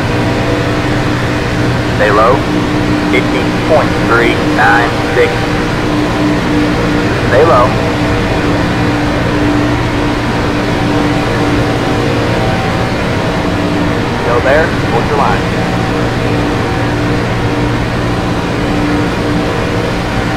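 A race car engine drones at a steady high speed.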